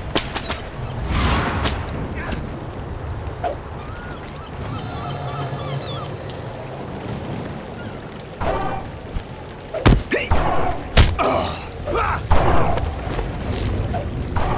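A magic spell crackles and whooshes as it is cast.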